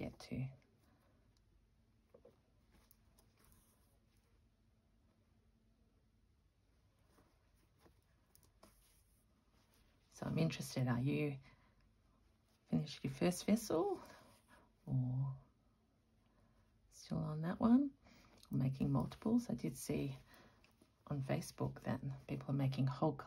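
Thread rasps softly as it is pulled through cloth.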